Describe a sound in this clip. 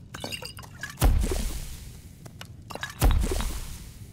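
A potion liquid bubbles and sloshes in a glass flask.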